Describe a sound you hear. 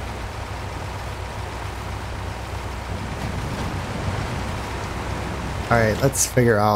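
A heavy truck engine rumbles steadily while driving over rough ground.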